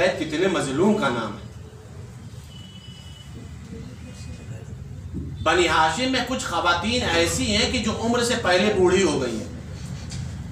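A man speaks with feeling into a microphone, heard through a loudspeaker in a reverberant room.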